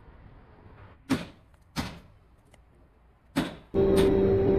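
A heavy metal lid scrapes onto a stone rim.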